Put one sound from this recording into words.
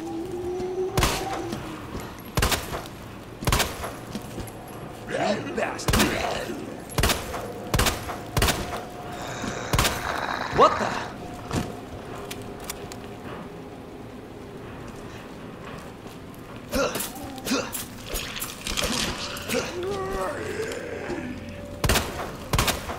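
Pistol shots ring out one by one, loud and sharp.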